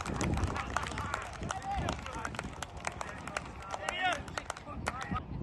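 Players clap and slap hands in celebration.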